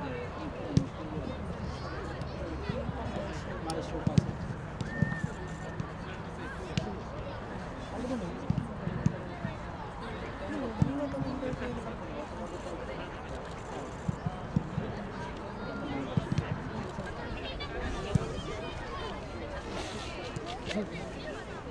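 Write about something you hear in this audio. A crowd of spectators murmurs and chatters outdoors.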